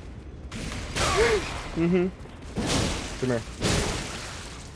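A young man exclaims close to a microphone.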